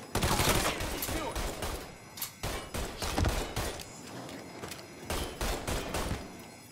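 Gunshots fire in rapid bursts, echoing in a large room.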